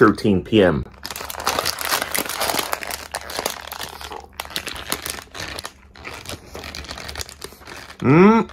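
A man crunches loudly on crispy fried food.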